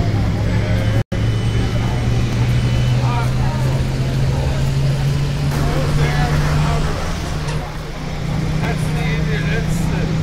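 A bus engine drones steadily while driving.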